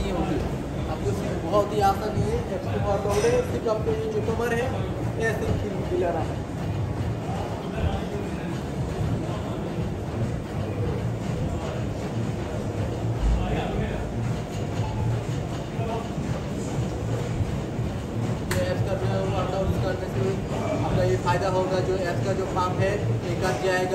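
A young man talks calmly and close by.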